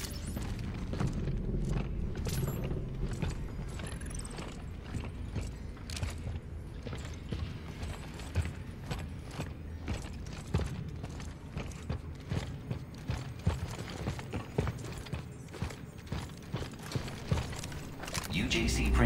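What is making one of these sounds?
Heavy boots clank in quick footsteps on a metal floor.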